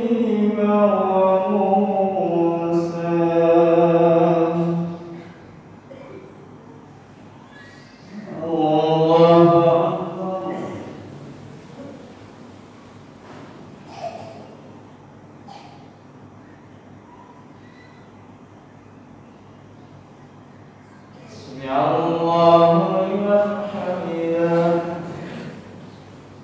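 An elderly man chants a long, drawn-out call in a large echoing hall.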